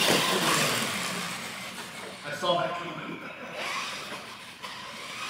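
Plastic wheels rattle and scrape on a smooth floor.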